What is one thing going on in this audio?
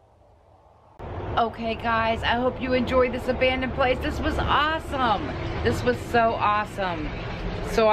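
A middle-aged woman speaks with animation close to the microphone.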